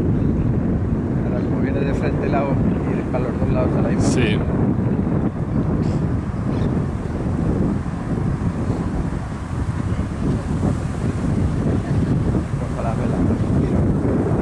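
Wind blows and rumbles steadily outdoors.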